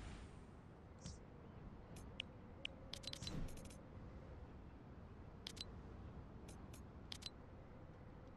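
Short interface clicks tick as a game menu is opened and browsed.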